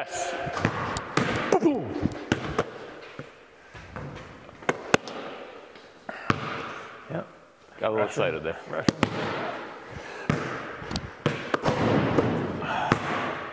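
A basketball clangs against a hoop's rim.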